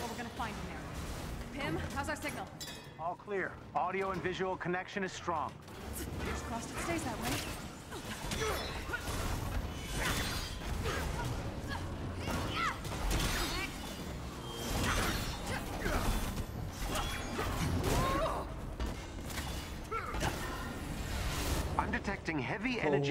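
Energy blasts crackle and boom in a fight.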